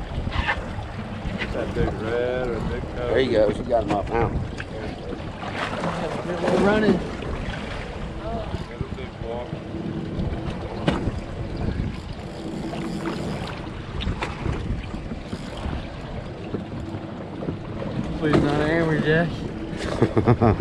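Wind blows and waves splash against a boat.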